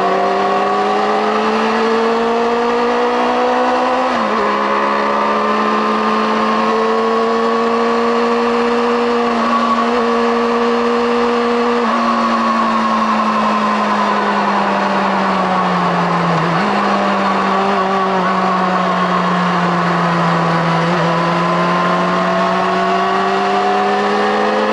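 Wind rushes past at high speed.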